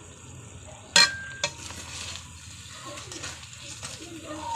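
A spoon clanks against a metal pan.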